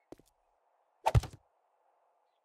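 A heavy wooden block thuds into place.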